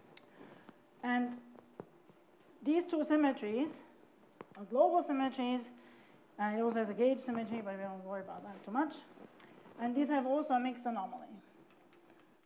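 A woman lectures calmly in a room with a slight echo.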